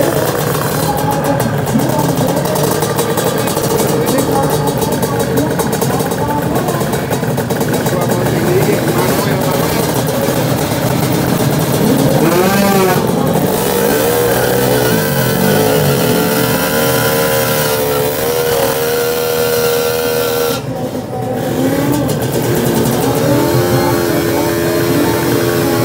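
A motorcycle engine revs loudly close by, its pitch rising and falling.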